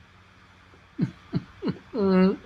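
An older man hums and groans briefly close to a microphone.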